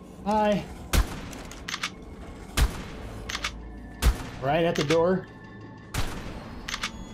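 A shotgun fires loud booming blasts.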